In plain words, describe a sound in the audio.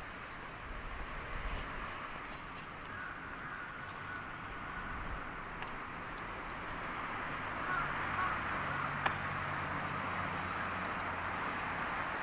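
Distant traffic hums steadily outdoors.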